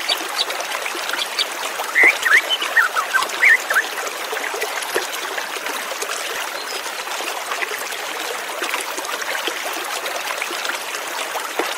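A white-rumped shama sings in clear whistling phrases.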